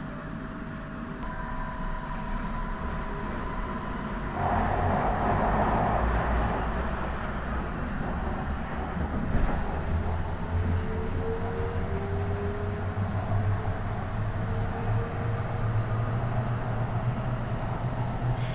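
A train rumbles and hums steadily along the track, picking up speed.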